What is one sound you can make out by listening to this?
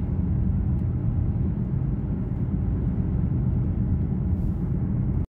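A car engine hums steadily with a low road rumble from inside the car.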